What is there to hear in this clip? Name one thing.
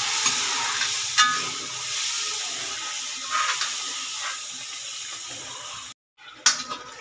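Thick sauce bubbles and sizzles in a metal pan.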